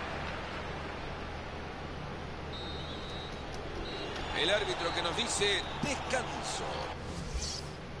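A stadium crowd cheers and claps.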